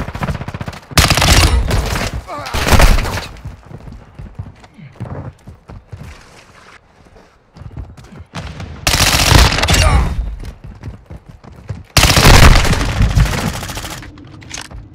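Guns fire rapid bursts of loud shots.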